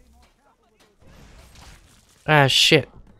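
Flames whoosh and crackle from a spell.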